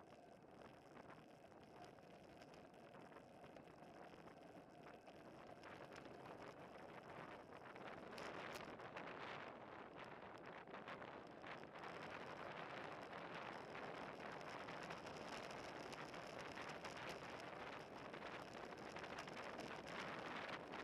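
Wind rushes steadily over a moving bicycle and grows louder as the speed picks up.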